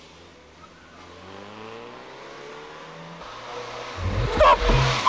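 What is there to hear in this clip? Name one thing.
A car engine hums as a car drives away.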